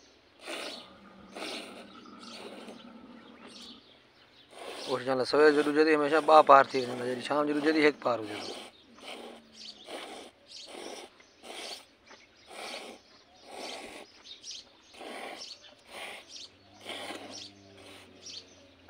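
Milk squirts in rhythmic hissing spurts into a metal pot.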